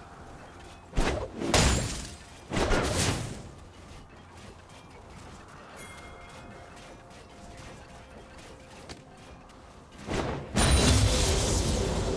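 Spells and attacks in a game burst and crackle in loud bursts.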